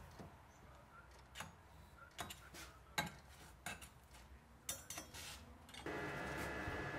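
Metal parts knock and clatter on a workbench.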